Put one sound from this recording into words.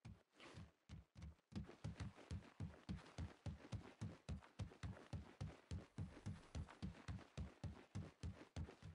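Footsteps thud quickly and steadily on a hard surface as a character runs.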